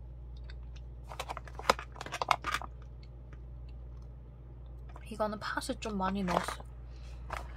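A plastic pouch crinkles as it is handled.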